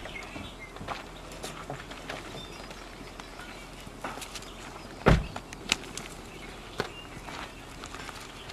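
Footsteps knock on a wooden walkway.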